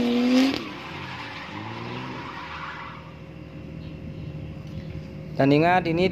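A car engine revs hard and screams outdoors.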